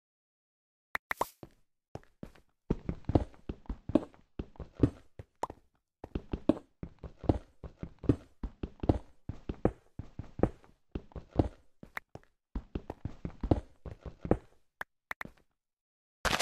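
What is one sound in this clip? A video game pickaxe chips at stone blocks with a run of crunchy taps.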